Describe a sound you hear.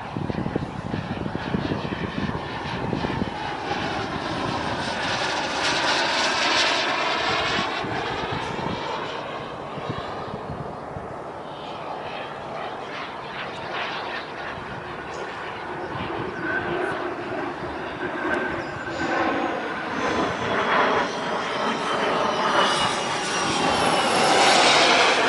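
A radio-controlled model jet's turbine whines as the jet sweeps past overhead.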